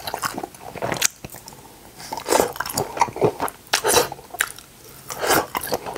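A man bites into crunchy food on a skewer.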